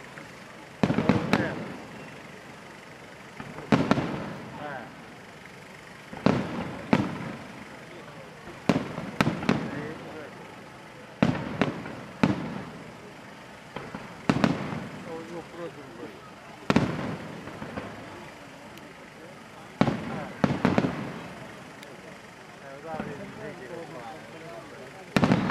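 Firework stars crackle after the bursts.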